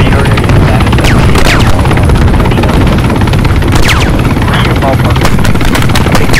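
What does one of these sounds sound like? A helicopter's rotor thumps loudly and steadily close by.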